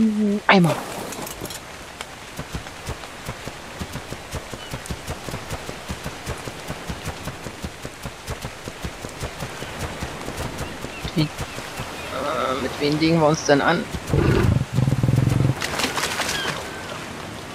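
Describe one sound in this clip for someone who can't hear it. Heavy animal footsteps thud steadily at a quick pace.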